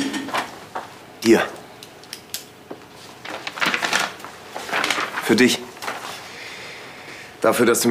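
Papers rustle on a desk.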